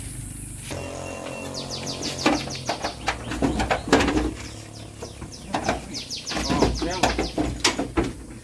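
A goat bleats nearby.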